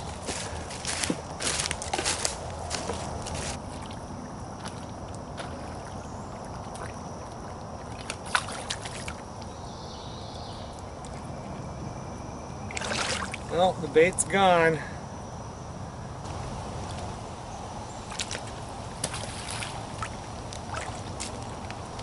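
An object splashes into pond water.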